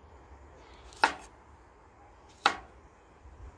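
A knife chops through cucumber and knocks on a wooden board.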